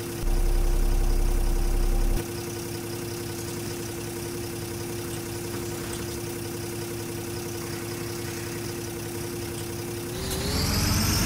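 A bus engine idles with a low, steady hum.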